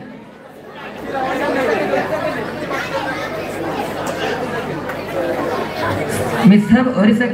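A crowd of men cheers and chatters.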